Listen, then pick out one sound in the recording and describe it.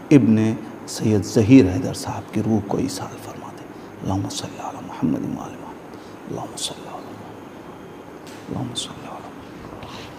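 A man speaks with feeling into a close microphone.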